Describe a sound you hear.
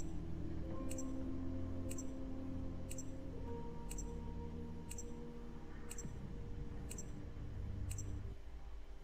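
A game countdown ticks once every second.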